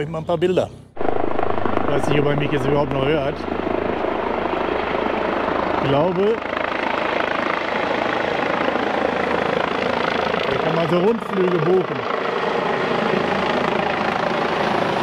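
A helicopter's rotor thuds overhead as it hovers.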